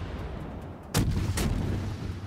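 Ship guns fire with a heavy boom.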